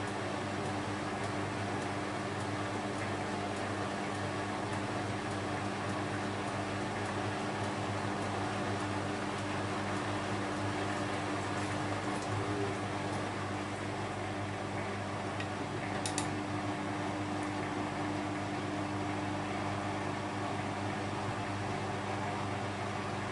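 Wet laundry sloshes and tumbles in a washing machine drum.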